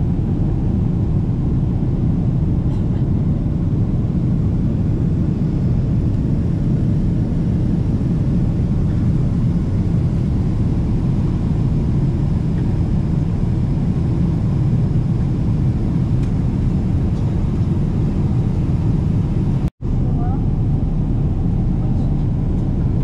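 A steady, low engine roar fills a jet airliner's cabin.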